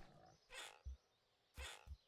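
A pig grunts nearby.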